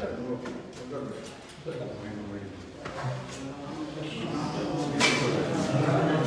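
A crowd of men and women talk close by at once.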